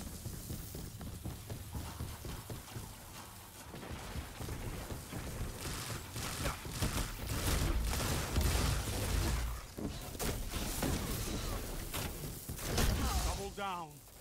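Electric zaps crackle and hiss.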